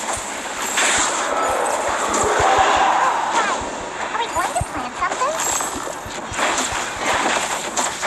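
Game spell effects and hits crackle and whoosh in quick bursts.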